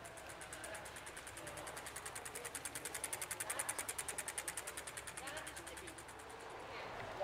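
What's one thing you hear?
A bicycle ticks as it rolls past close by.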